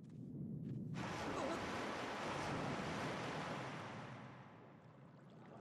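Water swirls and rushes.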